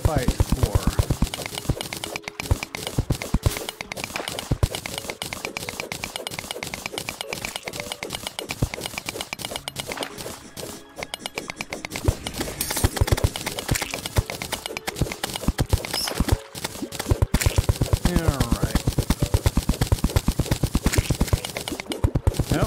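Rapid tapping clicks of a game pickaxe striking blocks repeat steadily.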